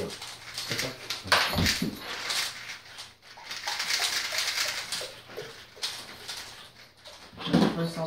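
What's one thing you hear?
Plastic puzzle cubes click and rattle as they are turned quickly.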